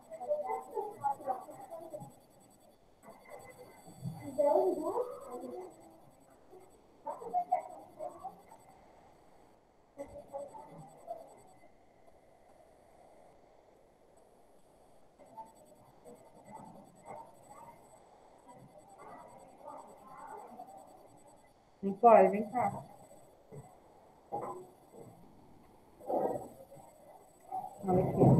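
A young woman speaks calmly through a computer microphone, with pauses.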